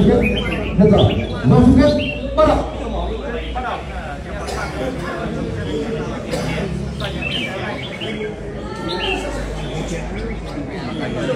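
A crowd of men talks and murmurs nearby.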